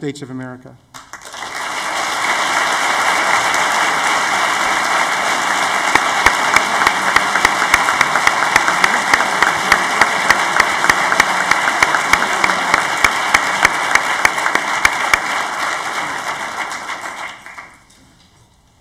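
An audience applauds loudly and steadily, then the applause fades.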